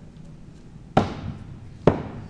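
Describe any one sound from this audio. An axe thuds hard into a wooden target.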